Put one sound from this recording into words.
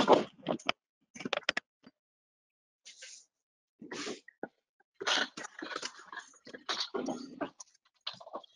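A woman speaks calmly into a microphone, heard as if over an online call.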